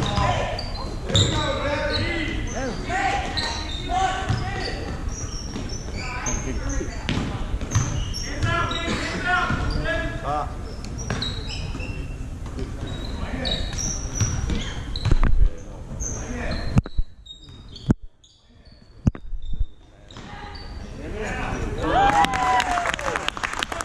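A crowd of spectators shouts and cheers in a large echoing gym.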